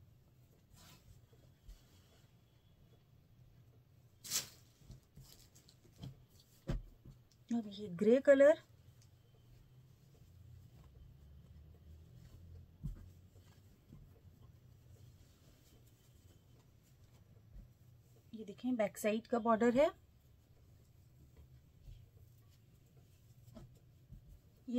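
Fabric rustles softly as hands handle it.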